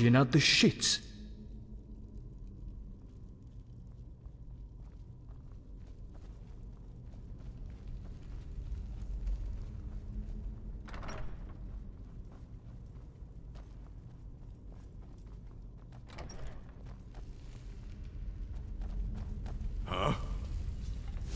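Footsteps crunch on a stone floor.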